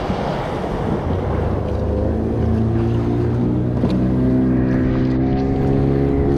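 A boat's outboard engine drones steadily and rises in pitch.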